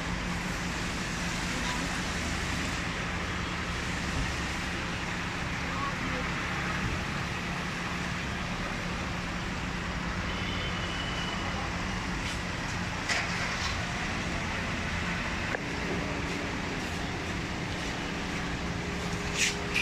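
Men chatter nearby outdoors.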